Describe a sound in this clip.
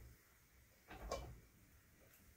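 A bamboo ladle knocks lightly against a metal kettle.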